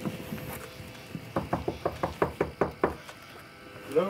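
A fist knocks rapidly on a wooden door.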